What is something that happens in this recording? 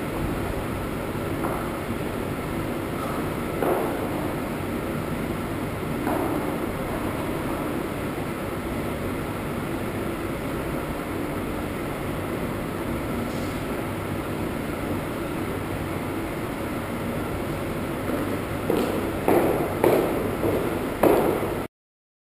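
High heels click on a wooden floor.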